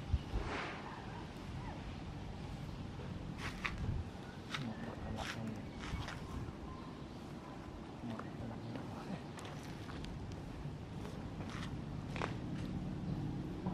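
A monkey chews and crunches on a pod.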